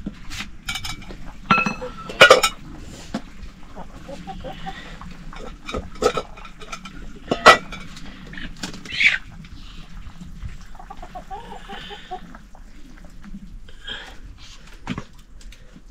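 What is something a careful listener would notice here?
A metal spoon scrapes and knocks inside a cooking pot.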